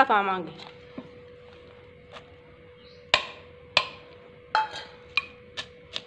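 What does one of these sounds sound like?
Chopped onions tip from a metal plate into a clay mortar.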